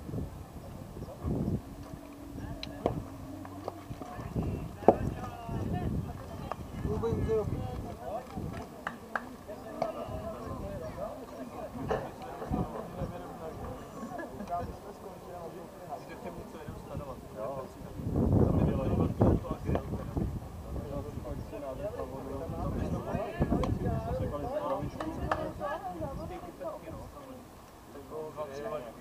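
Players on a sports field call out and chatter at a distance outdoors.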